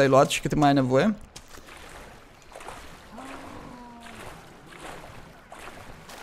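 Water splashes softly as someone wades through a pond.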